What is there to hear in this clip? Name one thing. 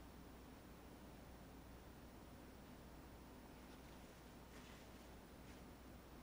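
A paintbrush softly scrubs and dabs on canvas.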